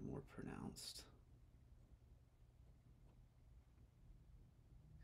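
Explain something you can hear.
A palette knife scrapes softly on a canvas.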